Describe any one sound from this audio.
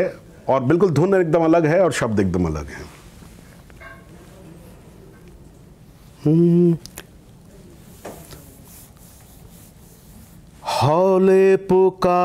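An older man speaks with animation into a close microphone.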